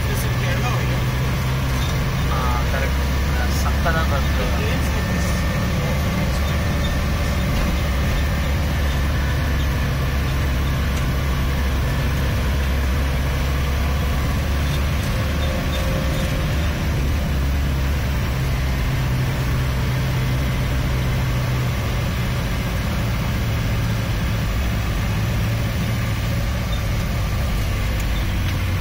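Car tyres hiss on a wet road.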